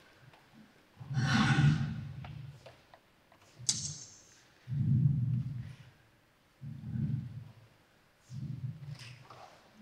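Bare feet thump and slide on a wooden stage.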